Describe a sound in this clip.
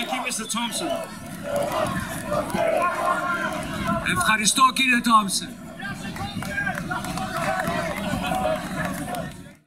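A man speaks with animation into a microphone over loudspeakers outdoors.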